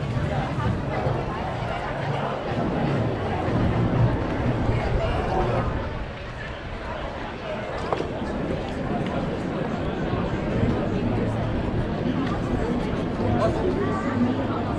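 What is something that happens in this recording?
A crowd of people chatter at a distance outdoors.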